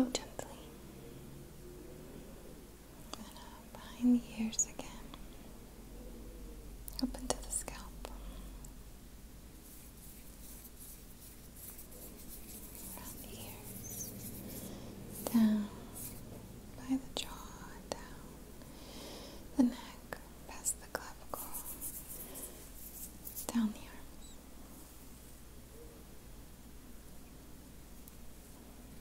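A young woman whispers softly and close to a microphone.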